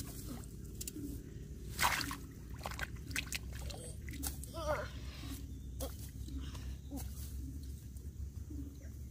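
Hands splash and slosh in shallow muddy water.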